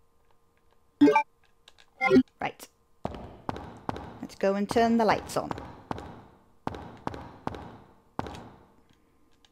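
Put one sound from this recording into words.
A young woman talks into a close microphone.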